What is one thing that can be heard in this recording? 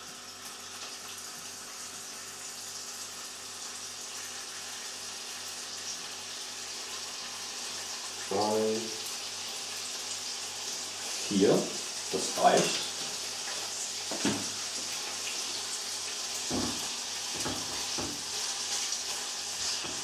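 Bacon sizzles steadily in a frying pan.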